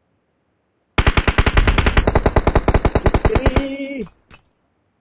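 Rapid automatic rifle fire rattles in quick bursts.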